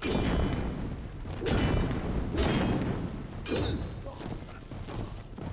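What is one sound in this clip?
A sword swings and strikes with loud whooshing hits.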